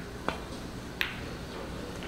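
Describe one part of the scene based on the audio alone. Snooker balls knock together.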